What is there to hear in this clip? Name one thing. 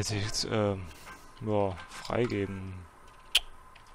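A computer terminal beeps with short warbling tones.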